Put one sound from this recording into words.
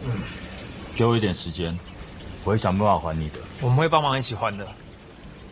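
A young man speaks earnestly and close by.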